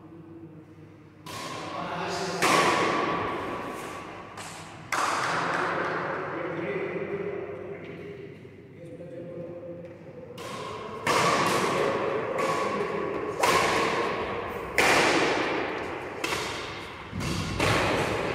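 Sneakers squeak and thud on a court floor.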